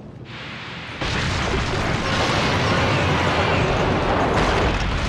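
A fiery blast roars loudly and keeps rumbling.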